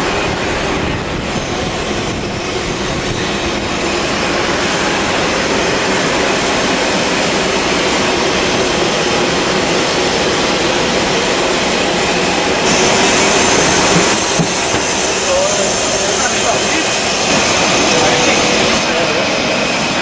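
A propeller engine roars steadily nearby.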